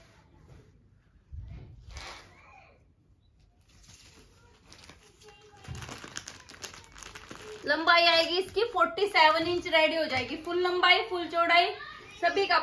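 Fabric rustles as it is handled and smoothed.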